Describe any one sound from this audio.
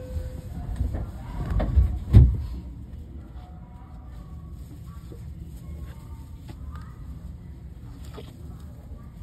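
Wheels knock and clatter over rail joints.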